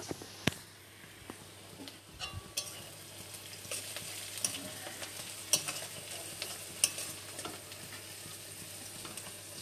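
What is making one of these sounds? A metal spatula scrapes and clinks against a pan.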